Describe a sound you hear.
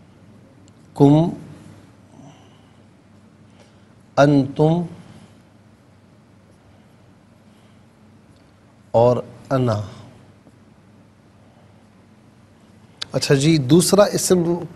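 A man speaks in short phrases close to a microphone.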